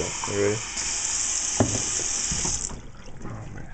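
Water runs from a tap and splashes into a metal sink.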